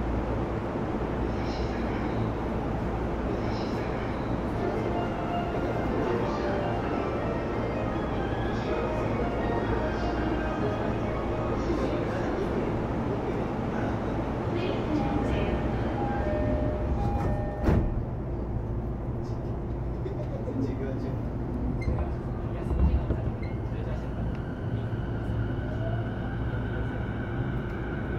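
An electric train rumbles along the tracks with a steady low hum and a whining motor.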